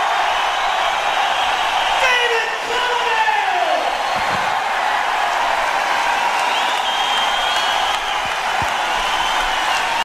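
A large crowd cheers and screams loudly in a big arena.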